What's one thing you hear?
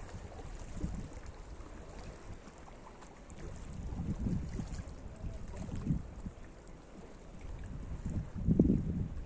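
Small waves lap gently against rocks on the shore.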